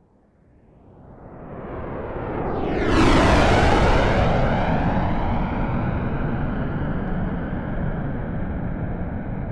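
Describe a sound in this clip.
Jet planes roar loudly overhead, then slowly fade away.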